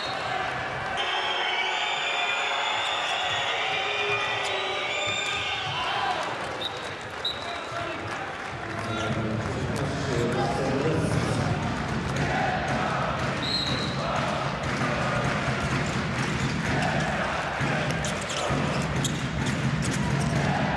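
Sports shoes squeak sharply on a hard floor.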